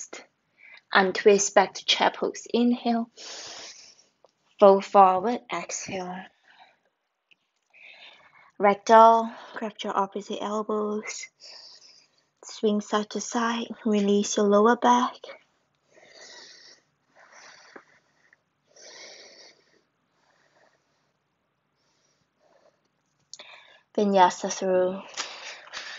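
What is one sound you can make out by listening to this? A young woman speaks calmly, close by, with pauses.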